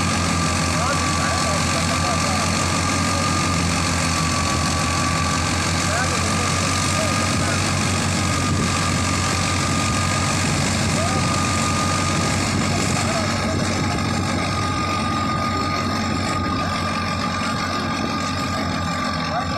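A threshing machine whirs and rattles as it chews through straw.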